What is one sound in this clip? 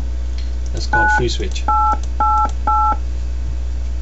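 Short electronic keypad beeps sound as a number is dialed.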